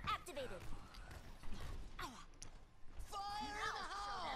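Gunfire in a video game strikes against an energy shield.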